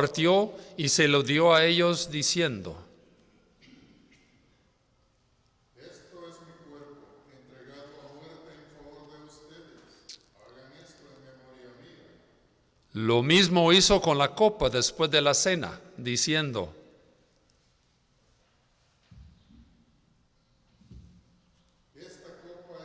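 A man sings through a microphone in an echoing room, pausing between lines.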